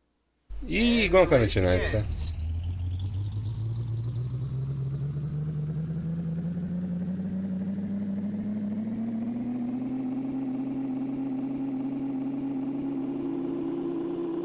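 A truck engine drones and slowly climbs in pitch as it speeds up.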